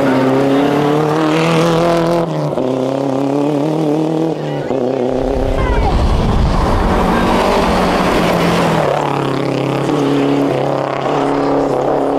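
Tyres crunch and spray gravel on a dirt road.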